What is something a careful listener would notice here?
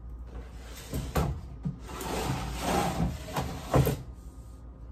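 A plastic bin lid knocks and rattles.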